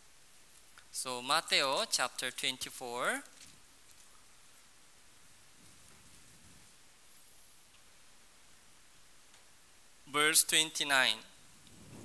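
A young man speaks into a microphone in short bursts.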